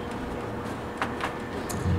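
Footsteps thud softly on a padded floor.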